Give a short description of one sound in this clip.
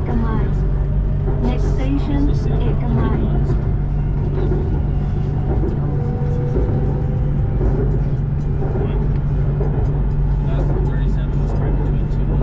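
Train wheels rattle and squeal on the rails.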